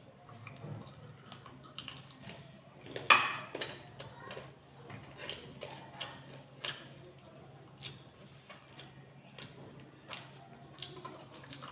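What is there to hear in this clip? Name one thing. A woman chews food loudly, close by.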